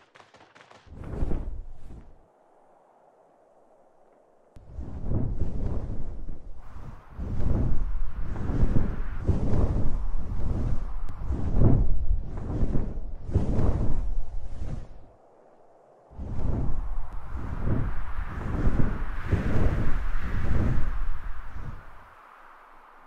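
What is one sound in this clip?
A large winged creature beats its wings with heavy whooshing flaps.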